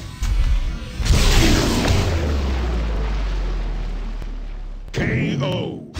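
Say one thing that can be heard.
Electric energy beams crackle and roar loudly.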